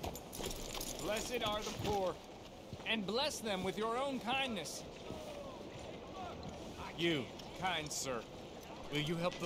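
A man speaks pleadingly nearby.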